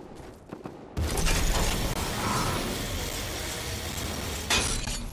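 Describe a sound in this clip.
A loud rushing whoosh swells and roars.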